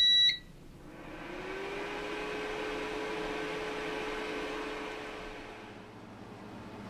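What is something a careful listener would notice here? A motor hums steadily, rising briefly in pitch as it starts, then fades.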